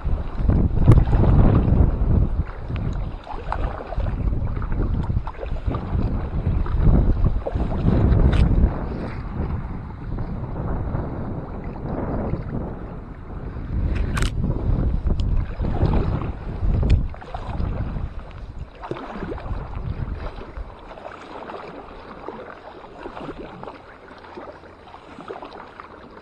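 Small waves lap against a kayak's hull.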